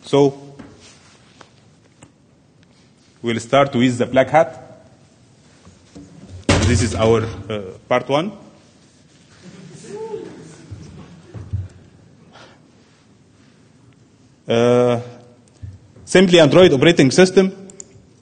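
A man speaks into a microphone in bursts, heard through a loudspeaker in a large hall.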